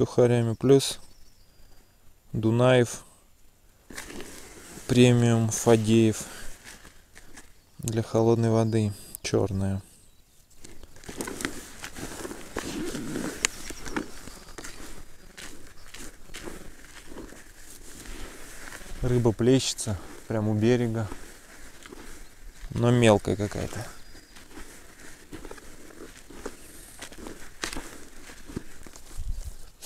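Hands rustle and scrape through dry soil.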